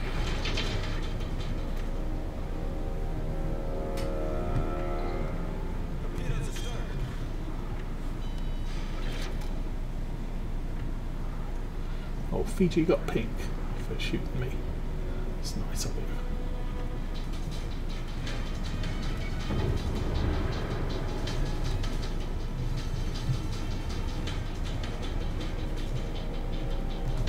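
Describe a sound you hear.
A large ship's engines rumble steadily.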